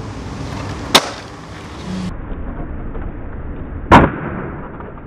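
A skateboard lands hard with a sharp clack.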